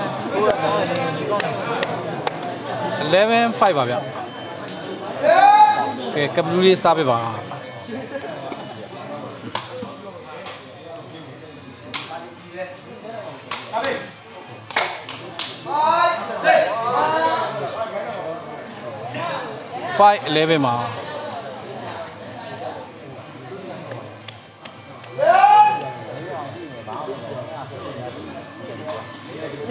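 A crowd of spectators chatters and shouts.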